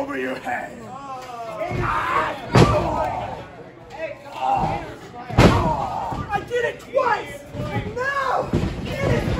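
A crowd of men and women shouts and cheers nearby in an echoing hall.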